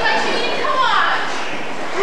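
A young woman shouts.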